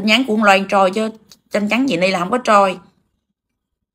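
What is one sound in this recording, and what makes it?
A woman speaks with animation, heard through an online call.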